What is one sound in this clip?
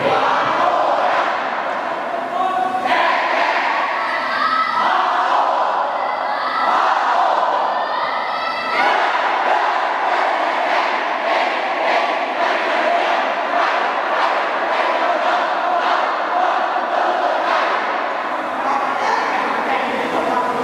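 A large crowd of young people chants together in an echoing hall.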